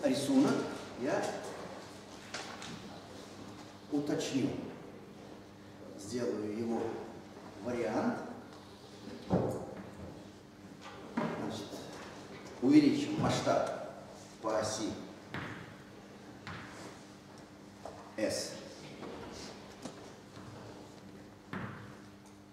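An elderly man lectures calmly in an echoing room.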